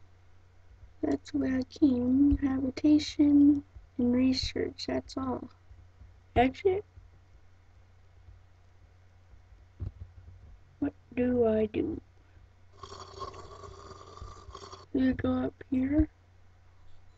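A boy talks casually and close to a microphone, in short bursts.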